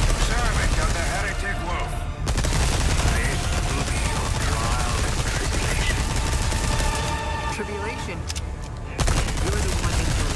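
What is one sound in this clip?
A monster growls and shrieks.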